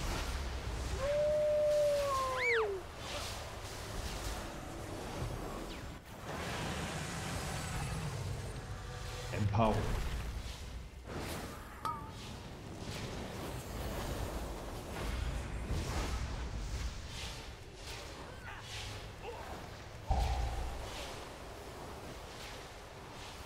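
Spell effects whoosh, crackle and chime in a rapid game battle.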